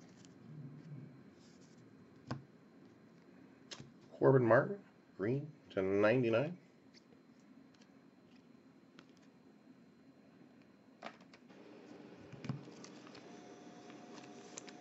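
Trading cards click and slide softly as they are flipped through.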